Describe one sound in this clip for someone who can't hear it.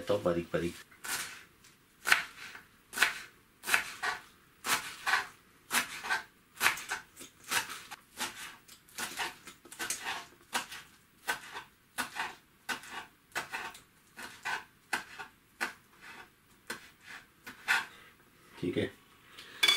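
A knife chops herbs rapidly on a wooden cutting board.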